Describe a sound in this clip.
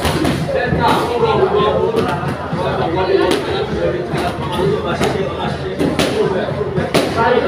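Several young men talk and call out in the background.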